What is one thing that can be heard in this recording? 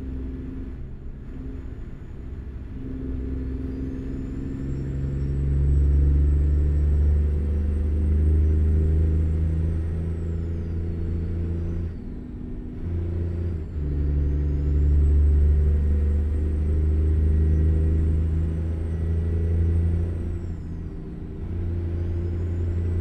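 A truck engine rumbles low and steady, rising and falling as it revs through the gears.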